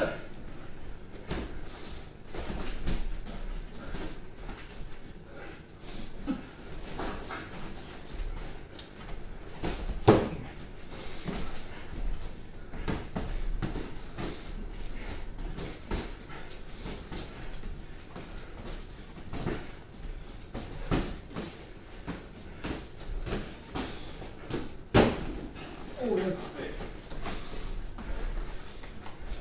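Boxing gloves thud against pads in quick bursts.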